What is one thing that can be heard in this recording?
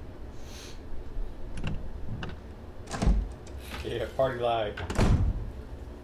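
A heavy wooden door opens slowly.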